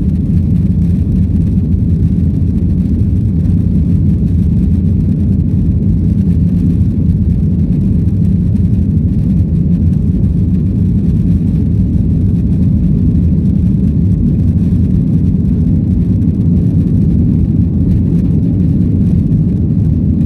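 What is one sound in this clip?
Aircraft wheels rumble over a runway.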